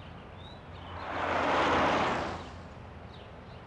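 A car engine roars as a car drives away.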